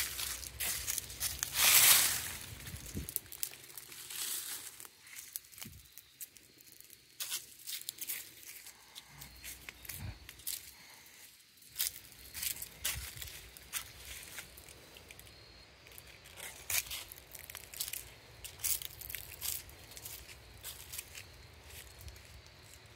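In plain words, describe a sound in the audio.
Bare feet crunch softly on dry leaves and dirt.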